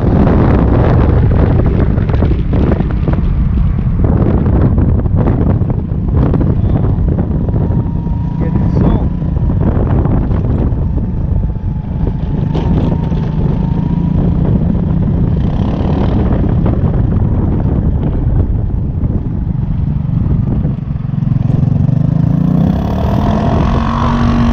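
Scooter tyres rumble over rough pavement.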